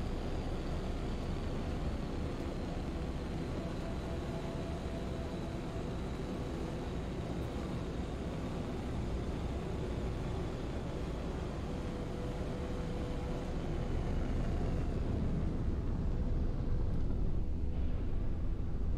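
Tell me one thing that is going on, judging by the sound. A spacecraft engine hums and roars steadily, growing louder toward the end.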